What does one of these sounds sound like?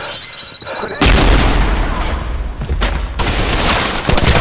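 A gun fires bursts of loud, rapid shots.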